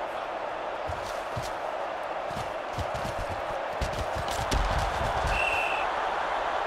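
Padded football players collide with heavy thuds.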